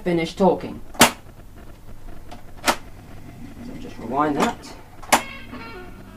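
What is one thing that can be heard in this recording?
Buttons on a tape recorder click sharply as they are pressed.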